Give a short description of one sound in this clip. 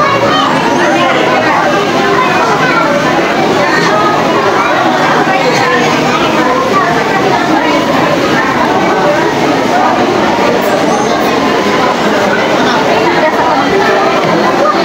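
Many voices of a crowd chatter all around in a busy, echoing room.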